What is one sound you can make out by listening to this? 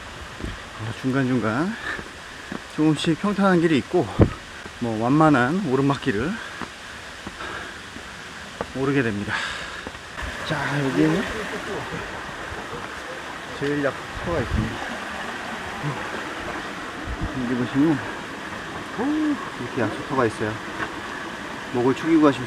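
A young man talks calmly and close by.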